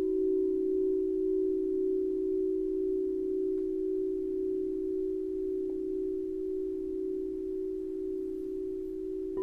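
A crystal singing bowl hums with a steady, ringing tone that slowly pulses.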